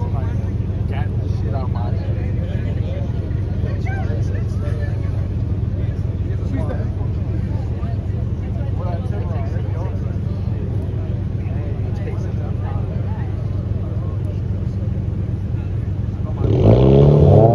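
Car engines idle with a deep, steady rumble.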